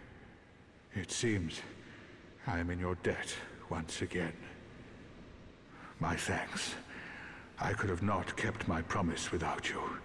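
A man speaks calmly and softly, close by.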